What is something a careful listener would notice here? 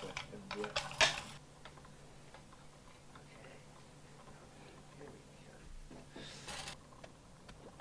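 A metal guitar string rattles and scrapes as it is threaded and wound.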